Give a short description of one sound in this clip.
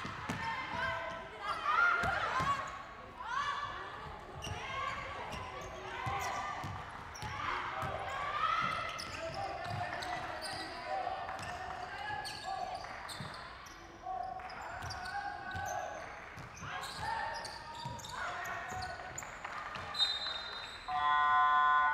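Sneakers squeak on a court.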